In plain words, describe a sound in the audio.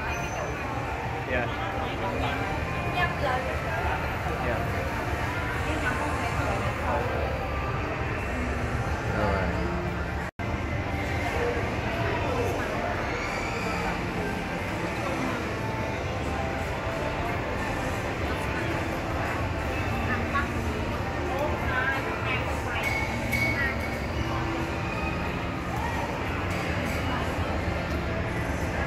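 Many people chatter in a busy indoor hall.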